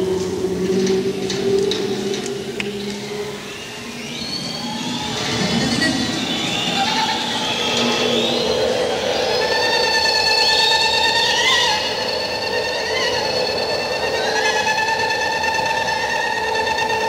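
A rock band plays live.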